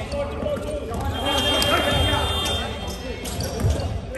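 Young men shout and call out to one another across the hall.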